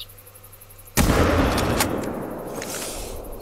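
A rifle fires a single loud shot that echoes across open country.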